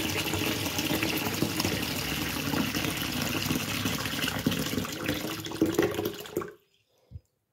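Tap water runs and splashes into a metal sink.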